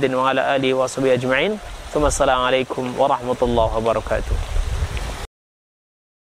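A middle-aged man speaks calmly and steadily into a close microphone.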